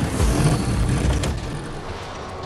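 A truck engine rumbles loudly and then cuts off.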